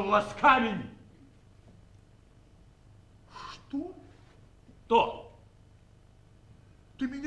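A man speaks loudly and theatrically in short bursts, in a large hall.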